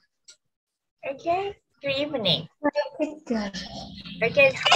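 A young girl talks with animation over an online call.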